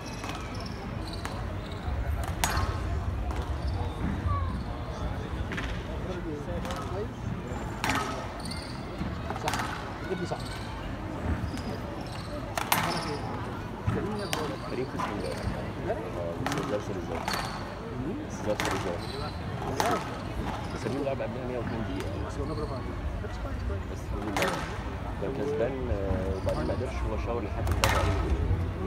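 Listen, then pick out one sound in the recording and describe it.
Spectators murmur in an echoing hall.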